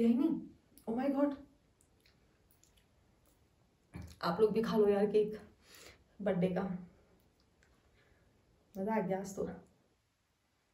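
A young woman speaks calmly and close by, in short phrases.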